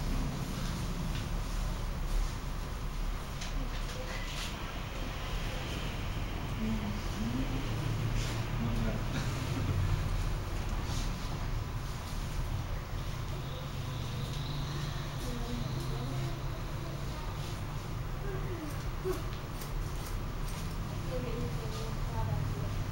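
Scissors snip through hair close by.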